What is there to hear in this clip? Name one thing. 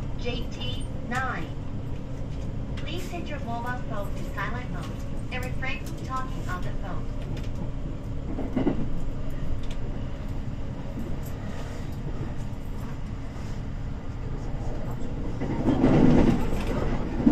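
Wheels of an electric commuter train rumble on the rails, heard from inside as it picks up speed.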